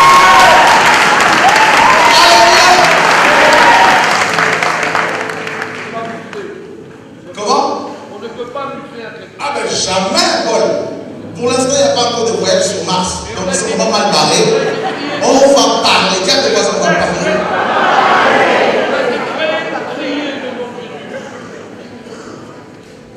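A man speaks with animation through a microphone in an echoing hall.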